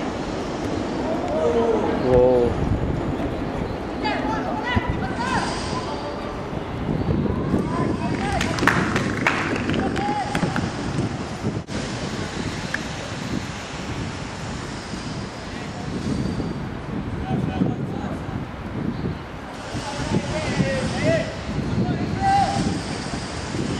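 Young men shout to each other across an open sports field, heard from a distance.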